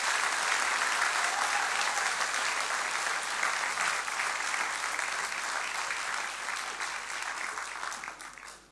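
An audience claps loudly in a large hall, and the applause slowly fades.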